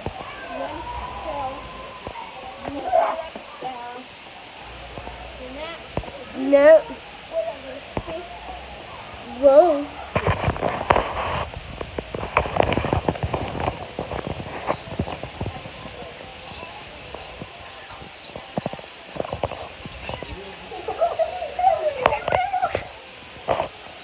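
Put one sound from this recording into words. A young girl talks and sings with animation close by.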